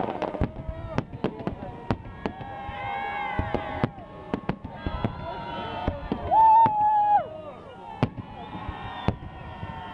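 Fireworks bang and pop in quick succession.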